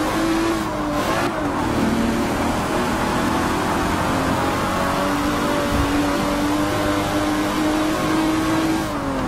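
A racing car engine roars as it accelerates hard and shifts up through the gears.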